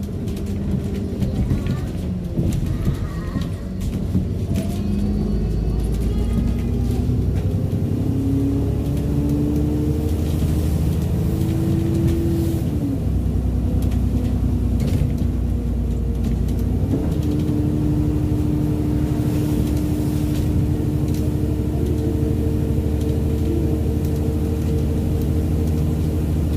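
A bus engine hums and whines steadily, rising and falling in pitch as it speeds up and slows down.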